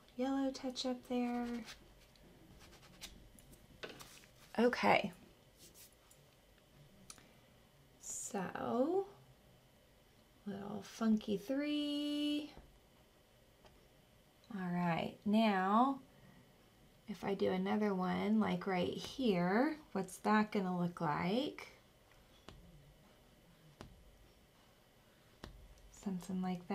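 A woman talks calmly and warmly, close to a microphone, in short phrases.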